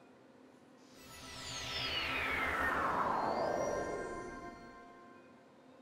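A shimmering magical sound sweeps down in pitch and fades.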